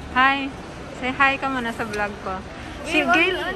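A second young woman talks animatedly close by.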